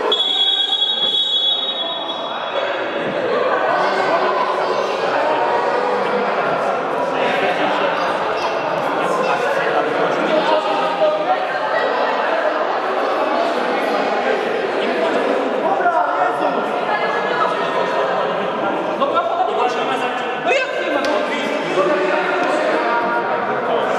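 Young men's voices echo loudly through a large hall.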